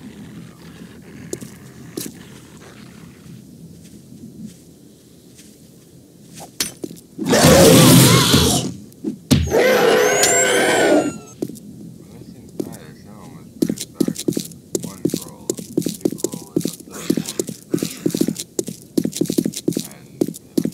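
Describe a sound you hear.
A young man talks close to a microphone.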